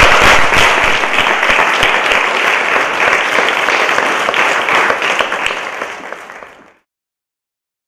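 A small audience applauds in a large echoing hall, then the clapping fades out.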